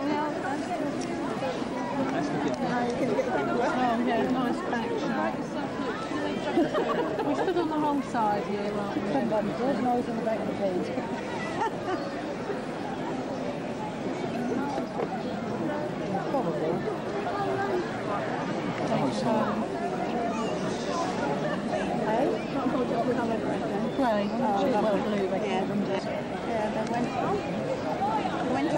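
A large crowd of men and women chatters all around outdoors.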